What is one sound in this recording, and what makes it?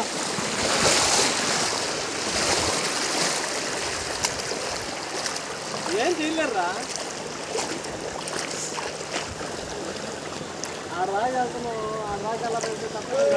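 Muddy floodwater rushes and swirls steadily.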